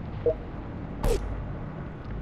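Short electronic clicks and chimes sound from a game's menu.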